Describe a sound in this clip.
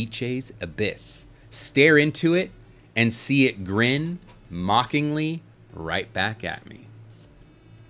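A young man reads aloud with animation into a close microphone.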